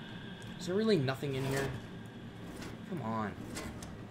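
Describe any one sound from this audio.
A metal drawer slides open.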